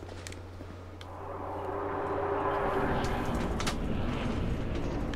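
A deep rushing whoosh swells as a figure passes through a fog wall.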